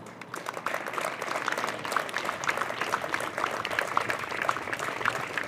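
A small crowd applauds outdoors.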